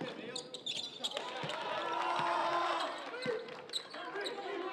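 A crowd in a gym cheers loudly.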